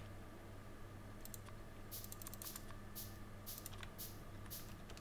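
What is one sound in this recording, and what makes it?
Menu clicks tick in a quick series.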